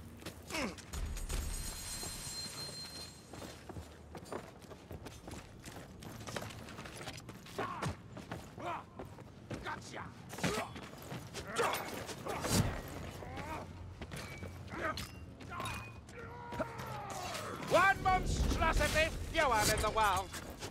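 Footsteps run quickly.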